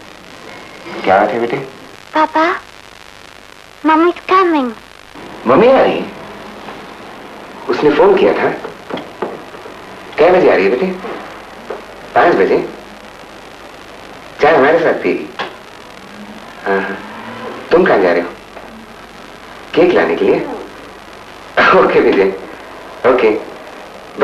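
A man talks on a phone in short bursts with pauses.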